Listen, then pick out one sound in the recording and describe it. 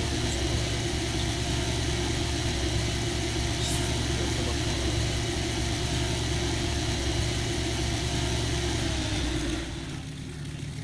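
A hovercraft engine roars steadily.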